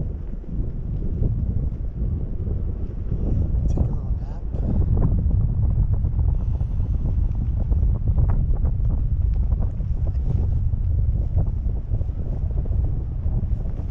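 Strong wind rumbles and buffets loudly against the microphone.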